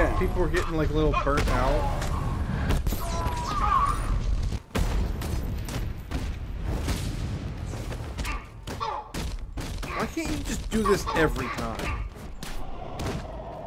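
Heavy punches and kicks thud rapidly in a brawl.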